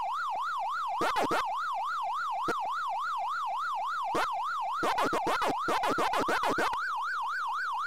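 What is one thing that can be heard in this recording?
Short electronic bleeps chirp now and then.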